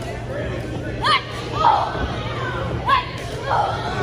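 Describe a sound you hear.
Spectators whoop and shout loudly in short bursts.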